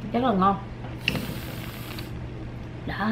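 Whipped cream hisses out of a spray can.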